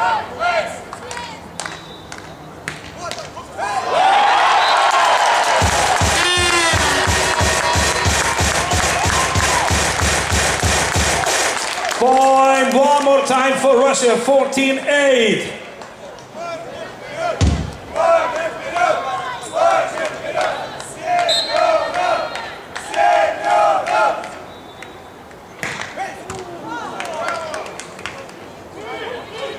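A volleyball thuds off a player's hands.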